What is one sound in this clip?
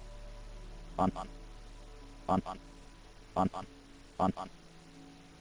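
Game menu clicks sound several times in quick succession.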